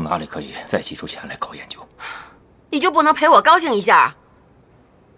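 A young woman speaks softly and pleadingly.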